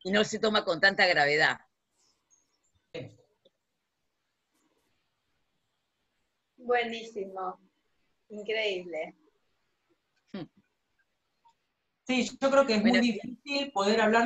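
A woman speaks through an online call, pausing between phrases.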